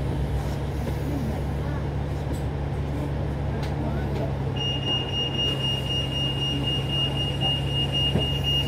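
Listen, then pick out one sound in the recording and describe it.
Cars and taxis drive past on a road, with a steady low rumble of traffic.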